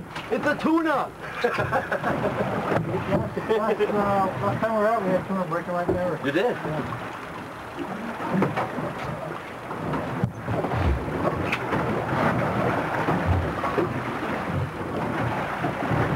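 A man talks with animation outdoors.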